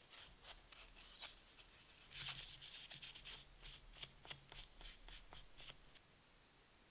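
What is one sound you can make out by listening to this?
A cloth rubs and squeaks against a small metal piece.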